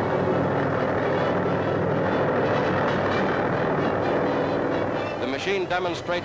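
A helicopter flies overhead with its rotor thudding.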